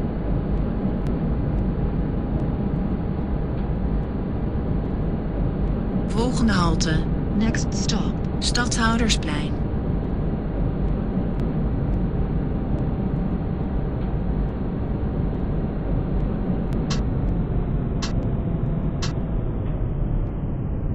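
A tram rumbles steadily along its rails with a low hum.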